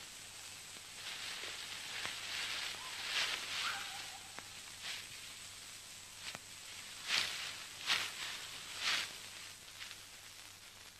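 Leaves and branches rustle in short bursts.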